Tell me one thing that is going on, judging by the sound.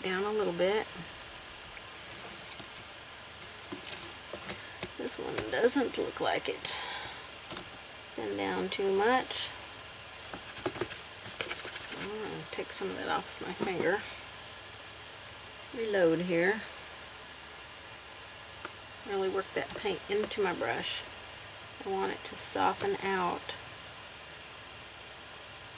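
A paintbrush strokes softly across a painted board.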